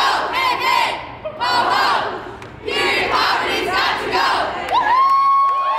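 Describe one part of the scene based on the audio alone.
A crowd of people shouts together outdoors.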